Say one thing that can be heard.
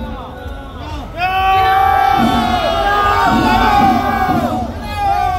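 A crowd of people talks and shouts loudly outdoors.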